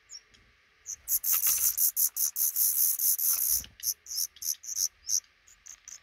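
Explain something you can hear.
Baby birds chirp loudly and rapidly, begging for food.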